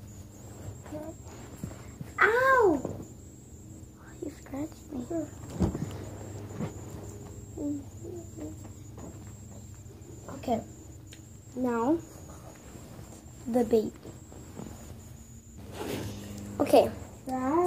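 A young girl talks in a high voice close by.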